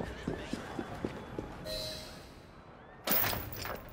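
A heavy wooden door creaks open.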